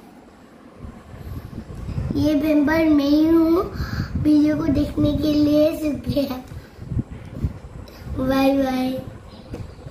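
A young boy talks with animation, close by.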